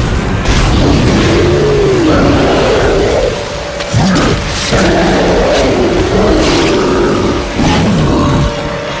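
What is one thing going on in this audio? A creature screeches and snarls close by.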